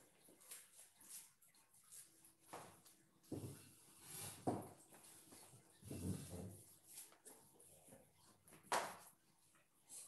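Paper rustles and slides.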